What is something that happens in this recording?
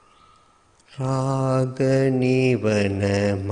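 A man chants in a deep, steady voice through a microphone.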